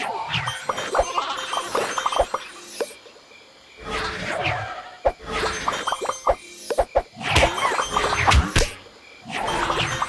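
Bright game chimes ring out again and again.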